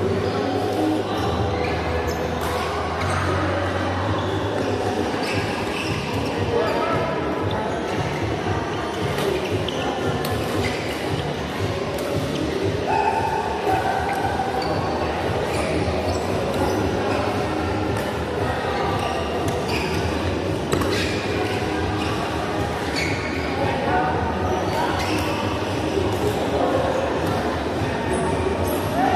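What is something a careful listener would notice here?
Players' voices murmur and call out across the hall.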